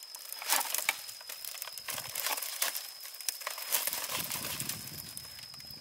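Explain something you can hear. Bamboo strips rustle and clatter as they are woven by hand.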